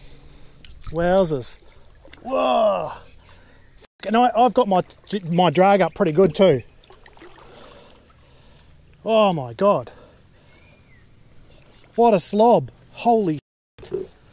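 A man speaks calmly close to the microphone, in short bursts.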